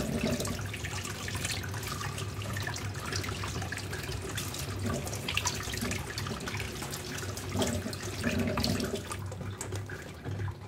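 Small hard objects clink and tap against each other.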